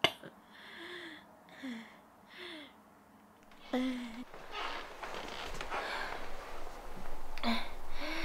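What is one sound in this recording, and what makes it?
A young woman whimpers and sobs softly close by.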